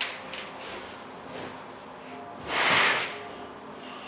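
A chair shifts as a man sits down.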